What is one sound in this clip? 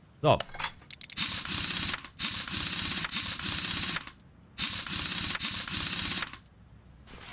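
An impact wrench whirs in short bursts, loosening wheel nuts.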